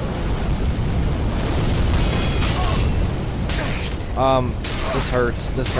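Fire roars and crackles as a fiery blast sweeps over the ground.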